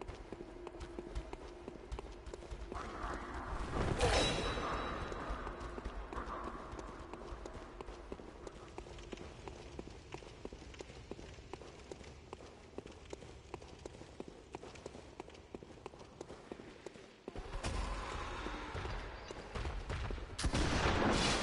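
Quick footsteps patter across stone.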